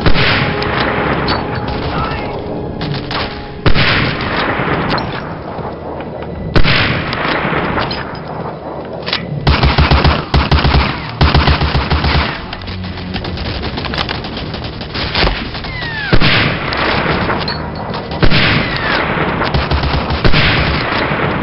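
Rifle shots crack loudly and echo.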